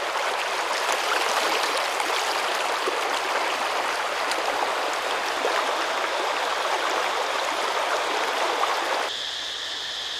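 A river rushes and splashes over rocks.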